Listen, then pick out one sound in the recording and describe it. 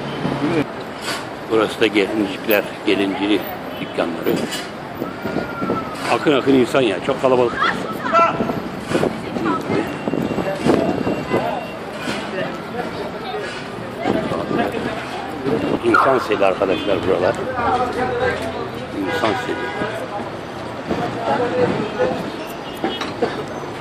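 Men and women chatter nearby on a busy pavement.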